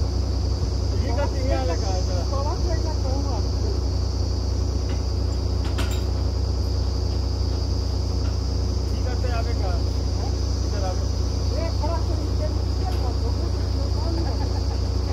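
Men talk outdoors at a distance.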